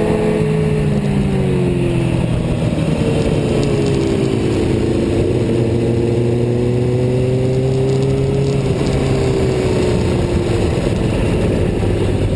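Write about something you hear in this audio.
A motorcycle engine hums steadily close by, its pitch rising and falling with the throttle.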